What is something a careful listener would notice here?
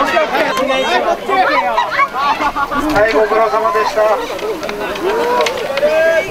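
A crowd of young men and women shouts and cheers with excitement outdoors.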